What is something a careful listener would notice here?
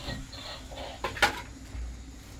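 A metal bowl clinks against a pan.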